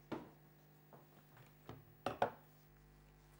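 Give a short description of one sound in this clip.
A window latch clicks and rattles.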